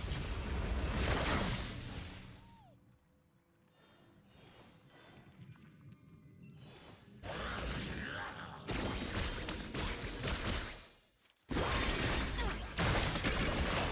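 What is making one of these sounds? Game spell effects and combat sounds crackle and clash.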